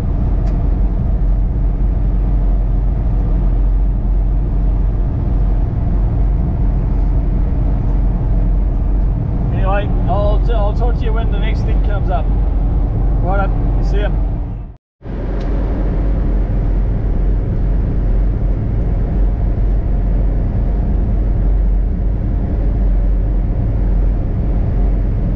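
Tyres rumble over a gravel road.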